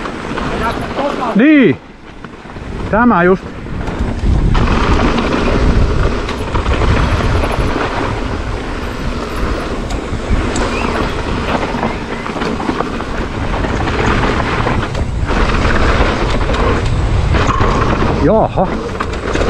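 Mountain bike tyres rumble and crunch over dry, loose dirt.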